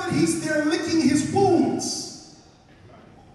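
A man preaches loudly and with passion into a microphone in an echoing hall.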